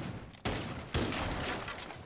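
A loud bang goes off close by.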